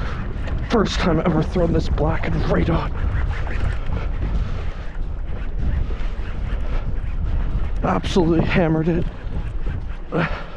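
Wind buffets loudly across open water.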